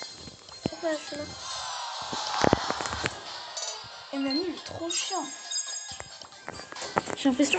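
Electronic game chimes and jingles play with short clicks.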